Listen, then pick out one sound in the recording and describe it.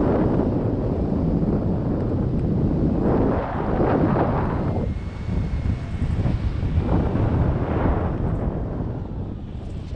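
Strong wind rushes and buffets against a microphone outdoors.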